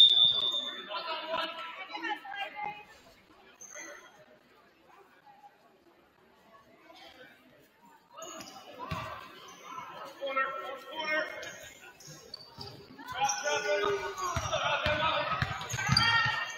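Sneakers squeak on a gym floor in a large echoing hall.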